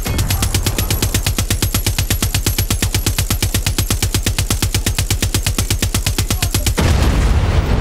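A heavy machine gun fires a rapid, steady stream of shots.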